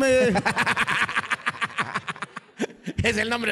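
A woman laughs loudly into a microphone.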